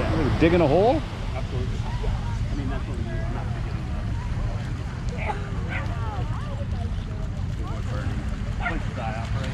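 Waves wash gently onto a beach.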